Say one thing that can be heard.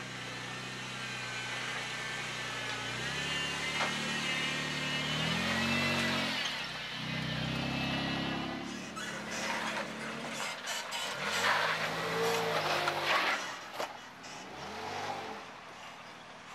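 An off-road vehicle's engine rumbles and revs.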